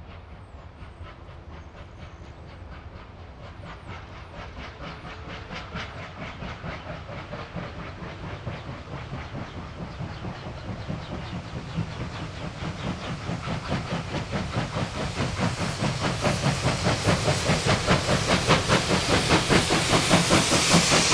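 A steam locomotive chuffs rapidly and loudly as it approaches, growing steadily louder.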